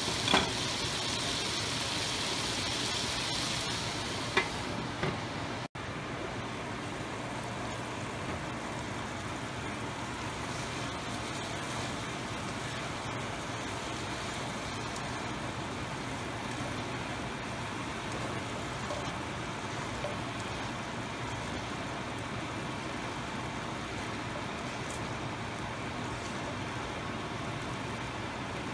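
Food sizzles steadily in a hot pan.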